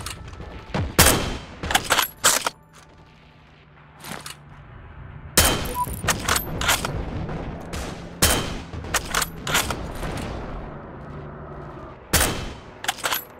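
A rifle fires loud, sharp single shots.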